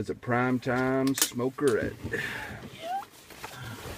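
A seat rattles and clunks as it is moved.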